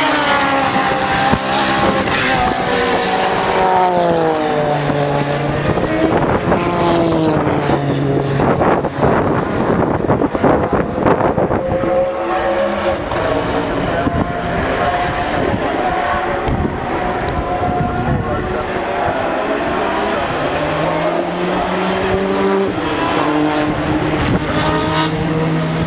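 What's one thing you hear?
Racing car engines roar and rise and fall in pitch as the cars speed past and change gear.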